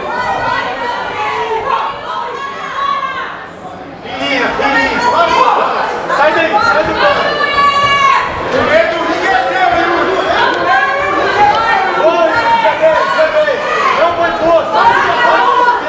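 Spectators shout and cheer ringside.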